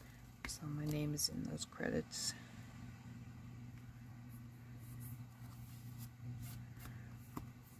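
Paper rustles softly as hands press and smooth it down.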